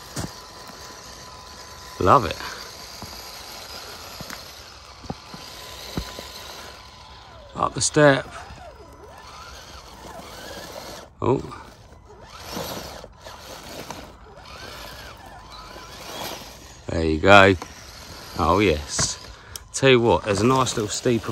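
Small tyres crunch over gravel and bark.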